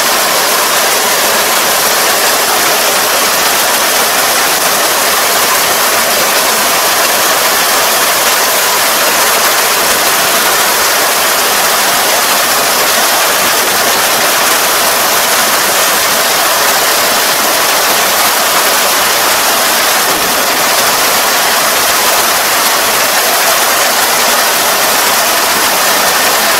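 A combine harvester engine roars steadily close by.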